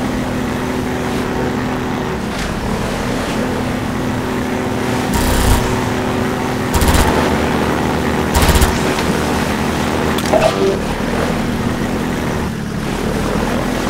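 A helicopter's rotor thumps overhead.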